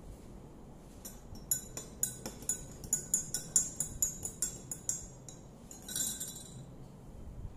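A spoon clinks rapidly against a glass, stirring.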